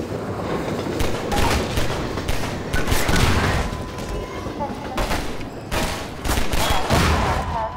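A pistol fires a series of sharp shots.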